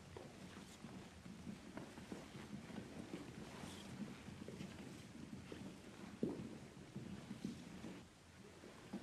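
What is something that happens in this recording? Several women murmur and call out anxiously close by.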